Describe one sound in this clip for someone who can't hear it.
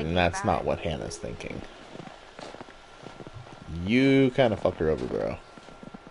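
Footsteps crunch slowly in snow.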